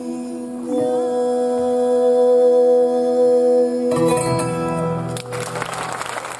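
A plucked guitar plays along with singing.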